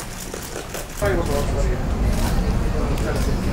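A crowd of people walks and chatters on a busy street.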